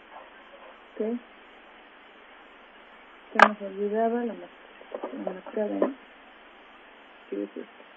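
A young woman speaks close to a microphone in short bursts.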